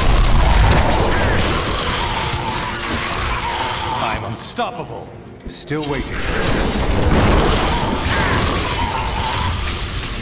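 Magic spells crackle and blast in a fast-paced game battle.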